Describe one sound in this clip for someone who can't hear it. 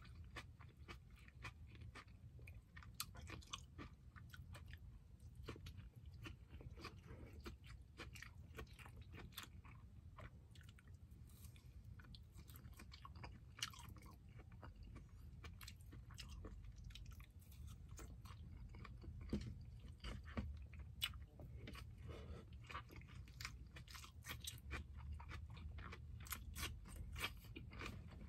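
A man chews food noisily, close to the microphone.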